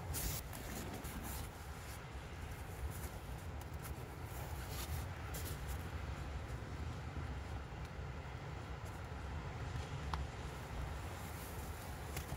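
A foil sheet crinkles and rustles as it is handled.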